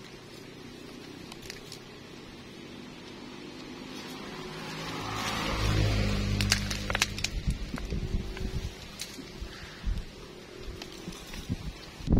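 Leafy branches rustle and crackle close by.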